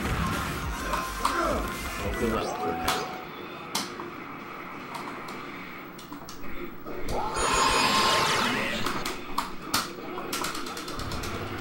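Arcade fighting game music and sound effects play.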